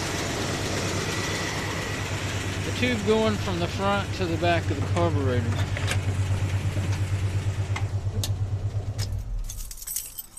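A car engine idles with a steady low throb, then shuts off.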